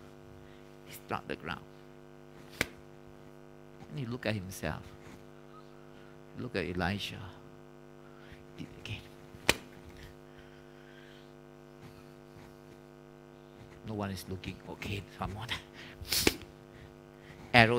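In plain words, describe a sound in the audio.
A man strikes the floor with a bundle, making sharp thuds.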